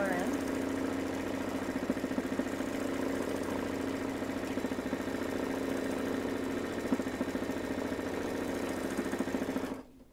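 A sewing machine hums and rattles rapidly as its needle stitches.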